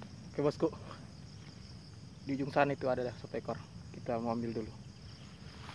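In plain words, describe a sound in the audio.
A young man speaks calmly close by.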